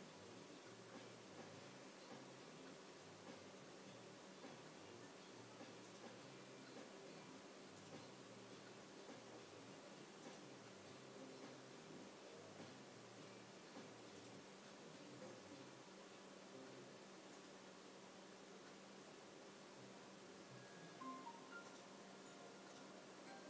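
A dog breathes slowly and softly in its sleep, close by.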